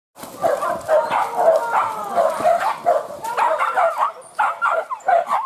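Dogs yelp and bark excitedly close by.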